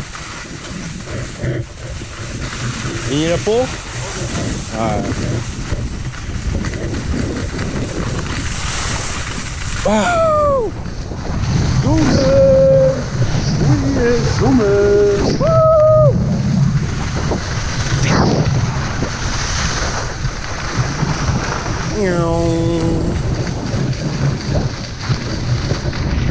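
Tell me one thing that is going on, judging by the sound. Skis scrape and hiss steadily over hard snow.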